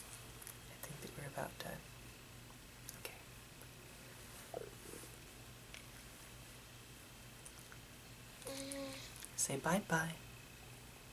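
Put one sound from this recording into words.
A young man talks softly and close by.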